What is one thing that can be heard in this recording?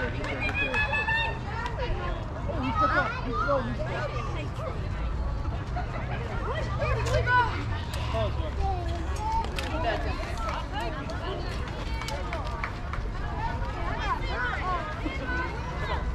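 A crowd of people chatters and calls out outdoors.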